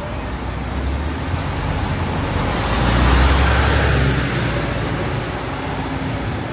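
A bus engine rumbles loudly as the bus pulls away.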